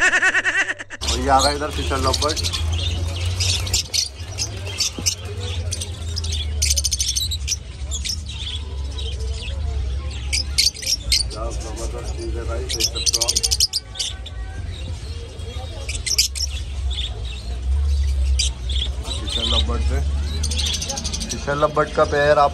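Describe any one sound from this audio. Many small parrots chirp and squawk close by.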